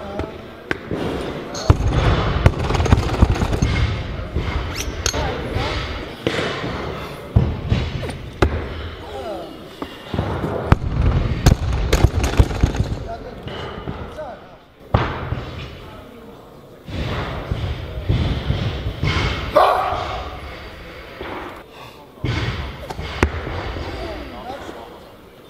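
Weight plates clank on a barbell in a large echoing hall.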